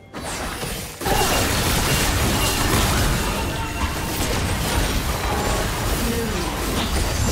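Magic spells and weapon strikes whoosh and crackle in a busy video game fight.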